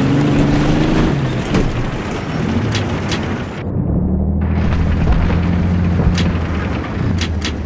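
A heavy machine gun fires in short bursts.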